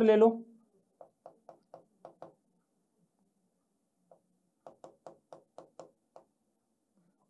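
A pen taps and scratches on a board.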